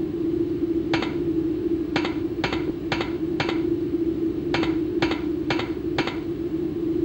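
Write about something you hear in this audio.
Quick footsteps clatter on a metal grating.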